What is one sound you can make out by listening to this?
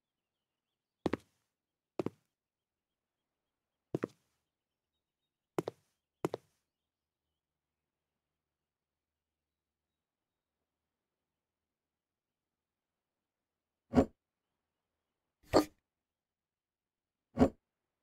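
Wooden cabinet doors click open and shut.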